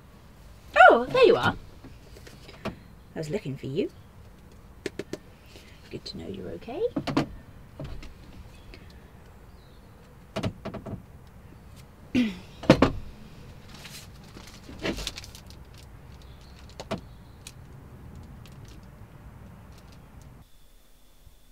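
Objects knock and clatter as things are rummaged through.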